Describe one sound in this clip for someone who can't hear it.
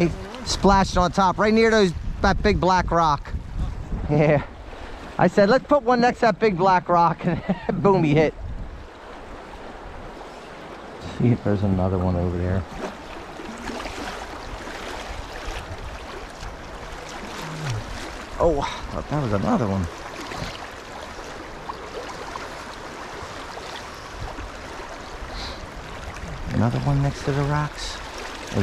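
A shallow river rushes and gurgles over stones.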